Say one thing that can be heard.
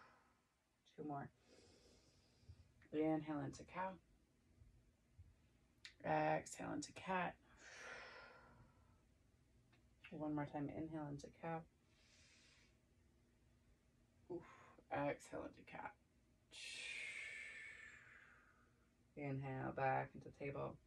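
A young woman speaks calmly and slowly, close by, as if guiding a stretch.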